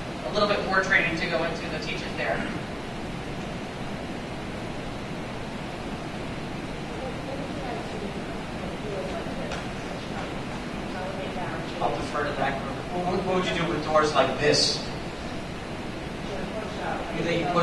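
A man speaks to a crowd in a large echoing hall.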